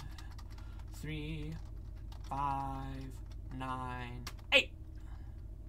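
Short electronic game tones beep as a code is entered.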